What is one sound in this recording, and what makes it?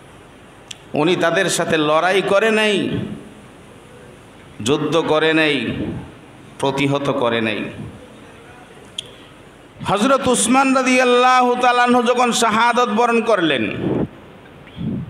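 A man speaks slowly into a microphone in chanting phrases with pauses.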